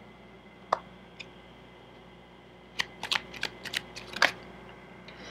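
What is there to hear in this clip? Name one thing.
Playing cards riffle and snap while being shuffled.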